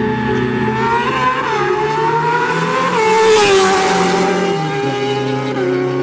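A motorcycle engine screams and rises in pitch as it speeds away.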